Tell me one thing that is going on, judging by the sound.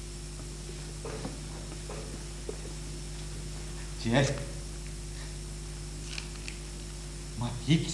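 An elderly woman speaks quietly nearby.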